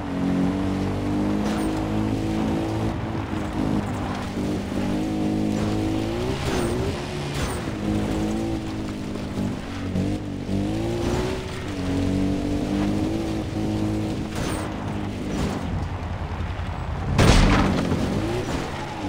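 A small engine hums steadily, rising and falling in pitch as it revs.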